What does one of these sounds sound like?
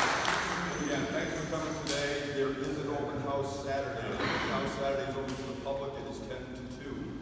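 A middle-aged man speaks to a crowd in an echoing hall.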